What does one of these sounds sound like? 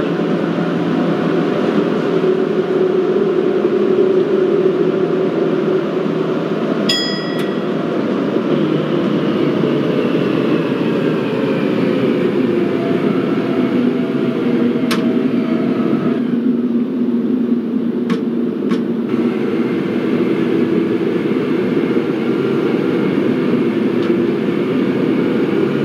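A train rumbles and rattles steadily along the tracks through a tunnel.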